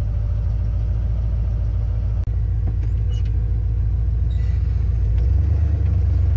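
A truck engine rumbles at idle.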